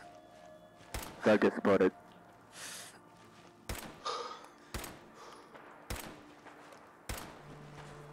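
Rifle shots crack one at a time.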